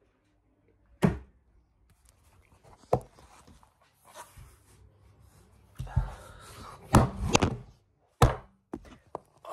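Knocks and bumps sound close by as the phone is handled.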